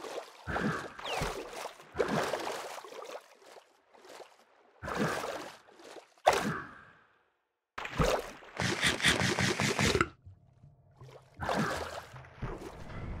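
Water splashes in quick bursts.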